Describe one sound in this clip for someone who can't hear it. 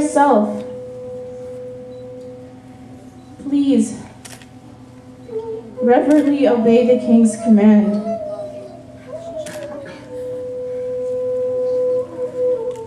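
A woman sings through a microphone, holding long notes.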